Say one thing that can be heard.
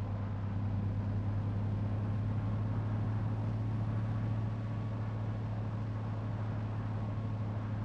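Tyres hum on a paved road.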